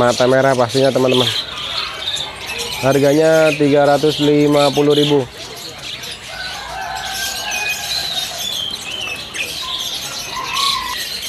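Many small birds chirp and twitter nearby.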